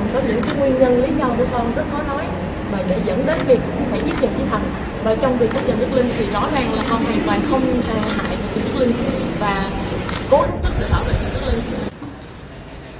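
A young woman speaks close by with emotion, her voice strained.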